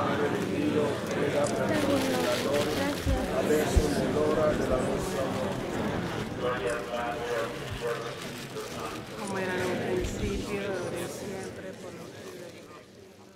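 A crowd of men and women talk over one another close by.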